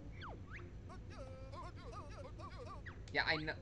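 A video game plays chirpy, babbling character sounds.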